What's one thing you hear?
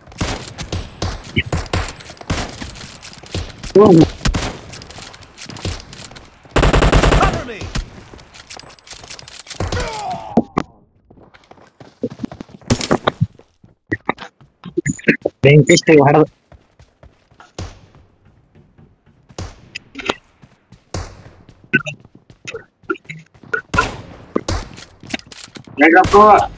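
Rifle shots crack, sharp and loud.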